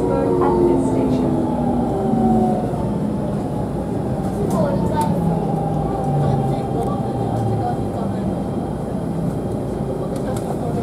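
A train's electric motors whine and hum as it pulls out of a station.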